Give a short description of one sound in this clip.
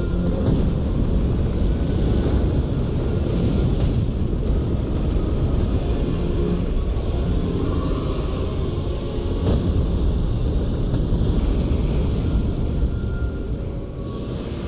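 Flames roar with a deep rumble.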